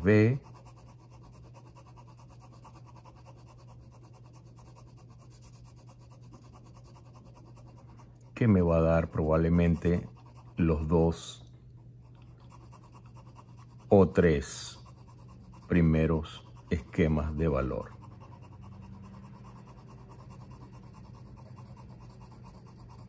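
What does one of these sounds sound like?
A pencil scratches softly across paper in quick strokes.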